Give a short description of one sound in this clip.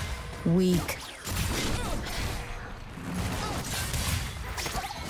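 Fantasy battle sound effects of magic blasts and impacts crash in quick succession.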